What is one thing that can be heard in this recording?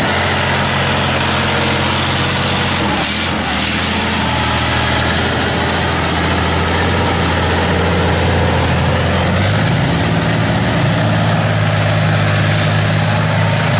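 A tracked armoured vehicle's diesel engine roars loudly close by.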